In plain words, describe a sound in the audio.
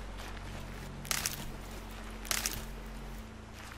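Plants rustle as they are pulled up.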